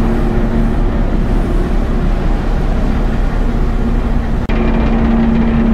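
Waves rush and splash against a boat's hull.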